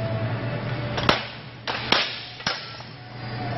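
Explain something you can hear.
Metal swords clash sharply.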